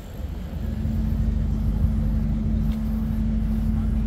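Bicycles roll past on a paved path.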